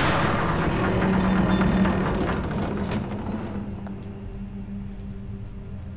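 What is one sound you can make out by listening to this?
Wooden double doors creak as they swing open.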